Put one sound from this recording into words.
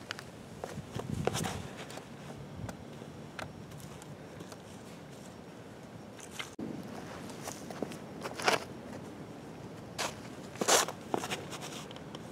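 Footsteps crunch on dry fallen leaves.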